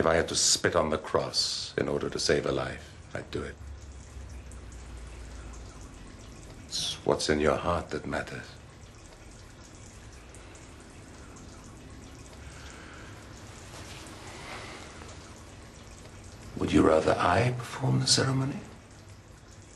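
An elderly man speaks tensely and close by, in short bursts.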